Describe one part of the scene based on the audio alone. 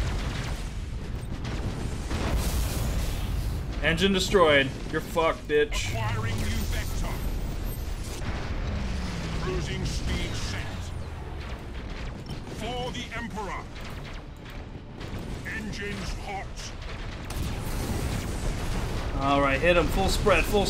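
Spaceship weapons fire and explosions rumble throughout a battle.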